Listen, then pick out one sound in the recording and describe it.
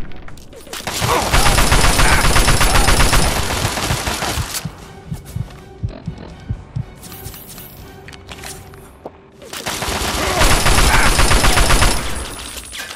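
An automatic rifle fires in rapid, loud bursts.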